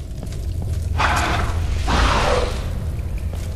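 A monster growls loudly.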